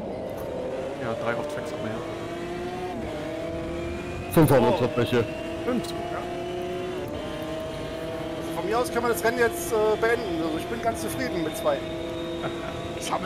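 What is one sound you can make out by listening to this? A race car engine roars steadily, shifting through gears.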